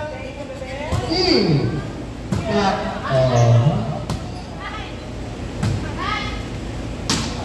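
Young women shout and call out to each other on the court.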